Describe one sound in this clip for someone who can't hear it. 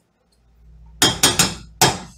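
A utensil clinks and scrapes against a metal pot.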